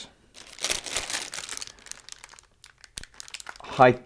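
Items rustle and clatter in a drawer.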